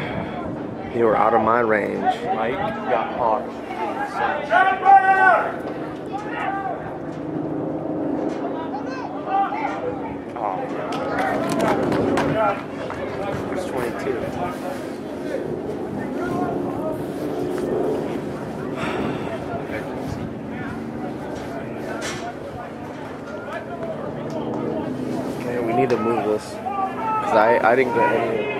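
Players shout and call to each other across an open field.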